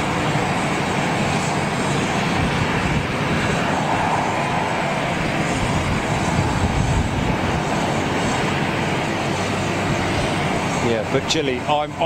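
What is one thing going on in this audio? Jet engines roar steadily close by.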